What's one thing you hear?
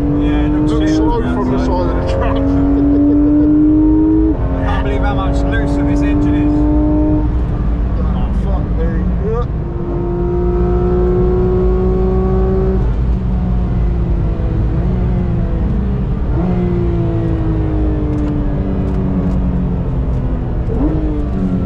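A car engine roars loudly up close, rising in pitch through the gears and dropping with each gear change.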